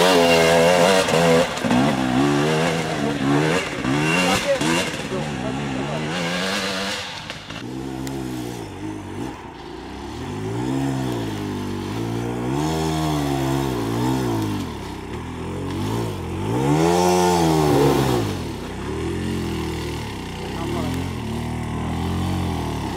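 A dirt bike engine revs up and down nearby.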